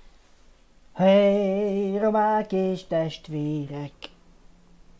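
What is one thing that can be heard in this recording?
A young man sings loudly into a close microphone.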